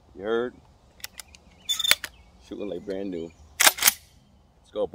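Metal parts of a shotgun click and clack.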